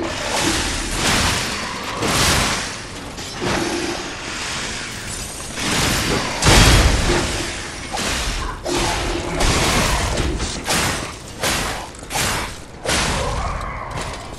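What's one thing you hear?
Heavy metal blades clash and slash in a fight.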